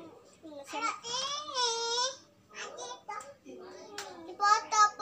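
A small child squeals in a high voice.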